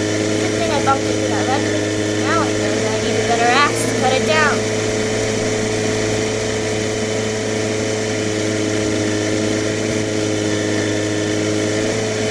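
A small cart's motor hums steadily as it drives along.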